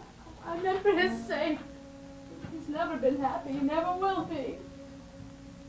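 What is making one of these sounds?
A woman sings out in anguish, her voice rising and falling in long wailing phrases.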